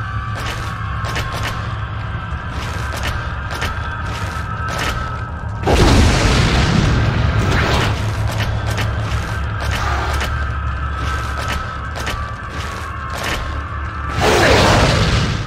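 A gun fires shots.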